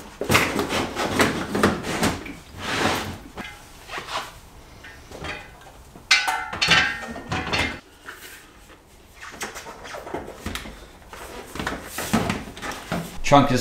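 Items clatter and rustle as a man rummages in a car's trunk.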